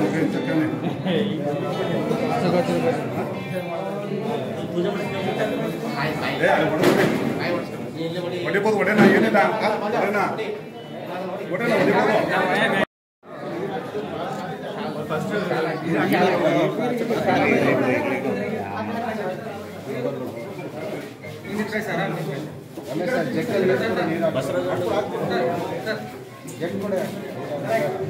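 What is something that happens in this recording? A crowd of men and women talk and murmur together nearby.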